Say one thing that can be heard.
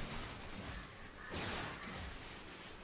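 An electric blast crackles and bursts.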